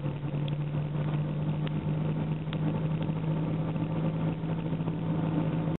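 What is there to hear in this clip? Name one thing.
Tyres roll over a road with a steady rumble.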